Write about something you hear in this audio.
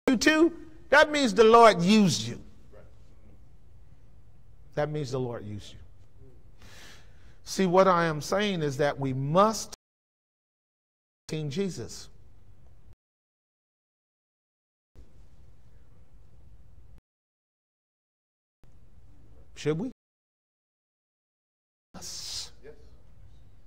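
A man speaks with animation through a microphone in a large room, with pauses between phrases.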